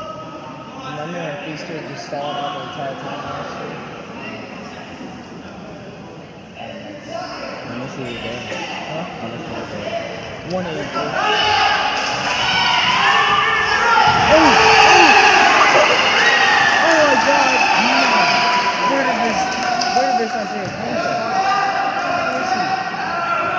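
Spectators shout and cheer loudly in an echoing gym.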